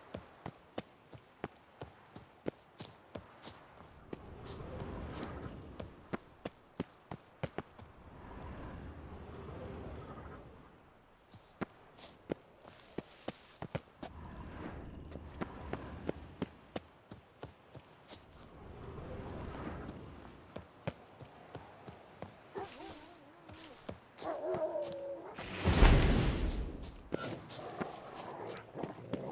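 Footsteps crunch steadily over ground and stone steps.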